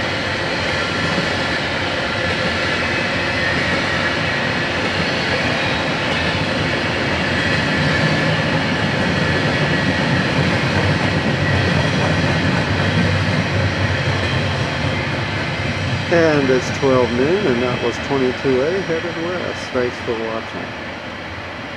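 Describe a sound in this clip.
A long freight train rumbles and clatters past.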